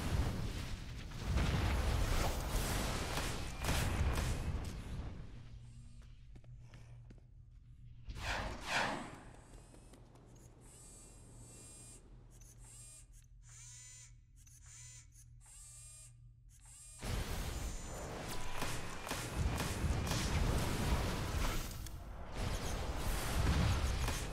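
Energy blasts and magic impacts crackle and boom in a game battle.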